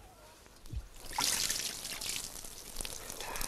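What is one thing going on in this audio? Water splashes from a raised cup.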